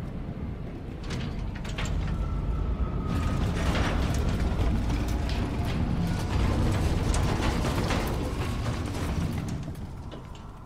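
A heavy metal bin scrapes and rumbles as it is pushed along the ground.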